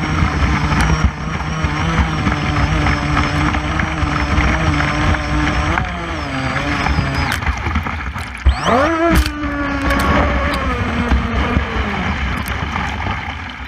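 Water splashes against a small boat's hull.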